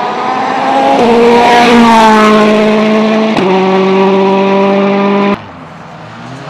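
A turbocharged rally car races past at full throttle, shifting up through the gears.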